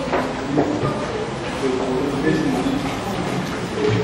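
A wooden paddle stirs and scrapes in a metal pot.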